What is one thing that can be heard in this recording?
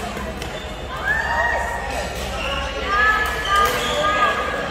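Sports shoes squeak sharply on a hard court floor.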